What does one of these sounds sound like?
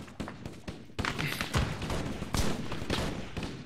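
Rifle shots bang in quick bursts.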